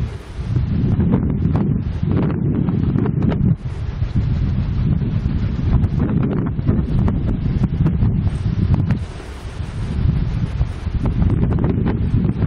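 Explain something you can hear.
Strong wind buffets the microphone in loud, rumbling gusts outdoors.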